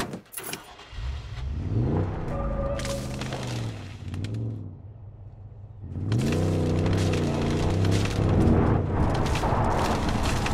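A truck engine starts, rumbles and revs as it drives off.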